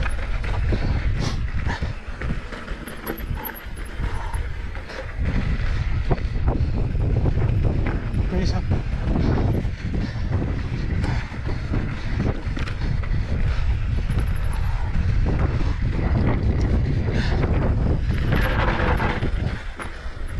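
Bike tyres crunch and skid over dry dirt and gravel.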